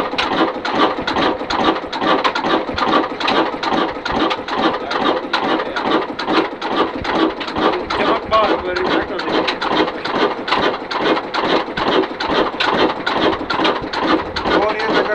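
Valve gear on an old diesel engine clatters in a fast rhythm.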